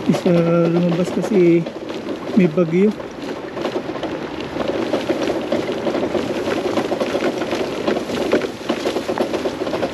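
Tall grass swishes and brushes against a moving motorbike.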